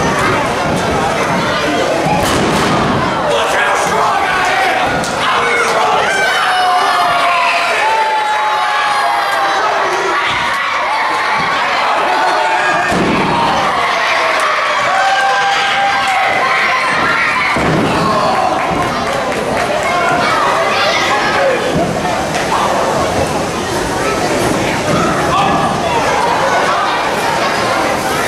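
A crowd of children and adults shouts and cheers in a large echoing hall.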